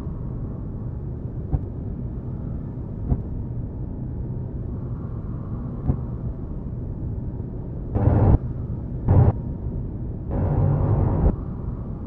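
A spaceship's engines rumble with a low, steady drone.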